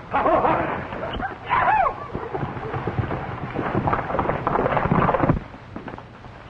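Horses' hooves stamp and clatter on dirt.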